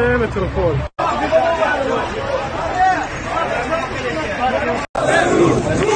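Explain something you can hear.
Men shout and argue close by.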